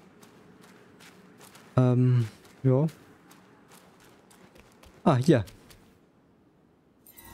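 Footsteps crunch lightly on dry ground.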